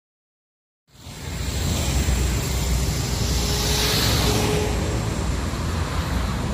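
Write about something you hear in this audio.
A bus engine hums as the bus waits by the roadside.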